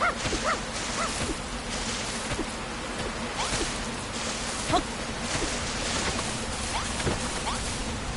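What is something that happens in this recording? Light footsteps patter quickly on grass.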